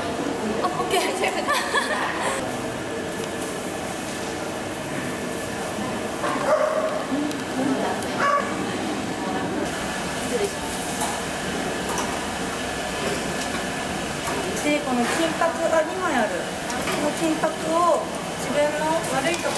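A young woman talks cheerfully nearby.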